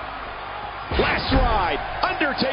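A wrestler slams heavily onto the ring mat with a loud thud.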